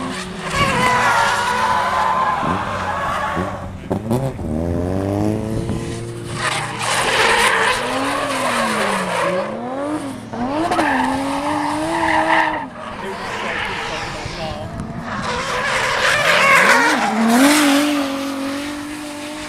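A car engine revs hard and roars, rising and falling in pitch.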